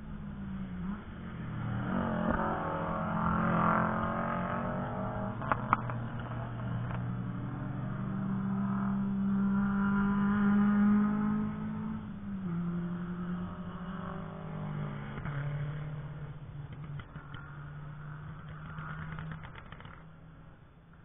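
Race car engines roar past on a track, rising and falling as they shift gears.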